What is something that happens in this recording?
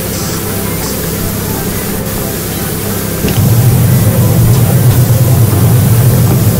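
A pressure washer sprays water in a steady hiss.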